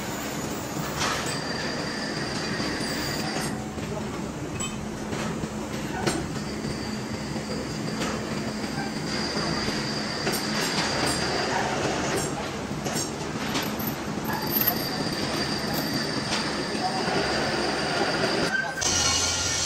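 An impact wrench whirs and rattles in bursts.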